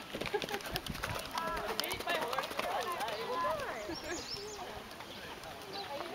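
A horse canters across soft sand with muffled hoofbeats.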